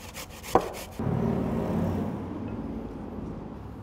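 A wooden spoon stirs grated vegetables in a glass bowl.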